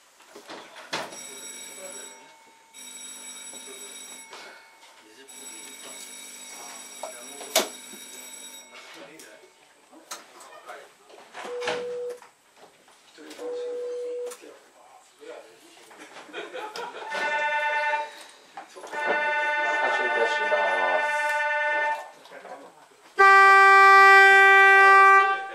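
An electronic signal tone beeps and chimes from a control panel.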